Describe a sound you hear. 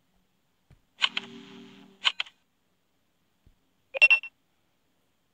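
Short electronic chimes sound.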